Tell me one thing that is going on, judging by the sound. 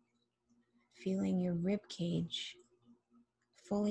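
A woman speaks slowly and calmly, close to a microphone.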